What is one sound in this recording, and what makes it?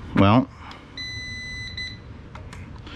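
An electronic device beeps several times.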